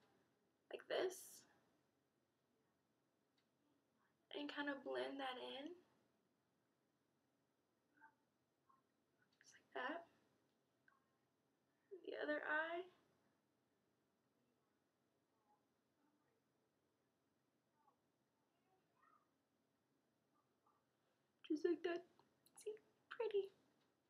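A young woman talks calmly and close up in short bursts, with long pauses.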